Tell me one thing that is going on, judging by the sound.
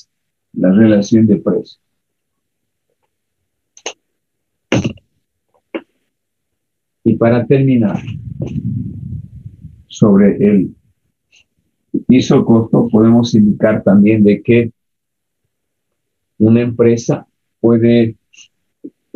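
A man speaks calmly and explains, close to a microphone, in short bursts with pauses.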